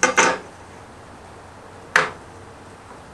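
A metal square knocks against a wooden board.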